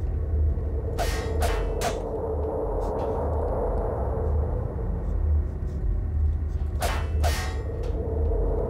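Footsteps clank softly on a metal vent floor.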